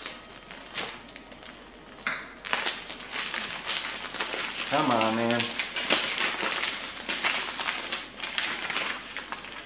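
A wrapper crinkles and rustles in hands.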